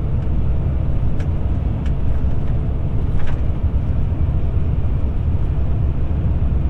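A car drives steadily along a paved road with a low, constant rumble.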